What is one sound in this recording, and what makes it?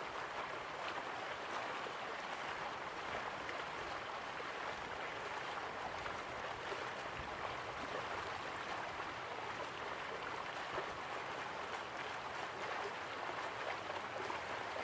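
Waterfalls rush and splash steadily in the distance.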